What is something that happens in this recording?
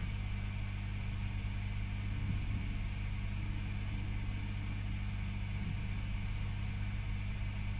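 An electric guitar amplifier hums steadily and low.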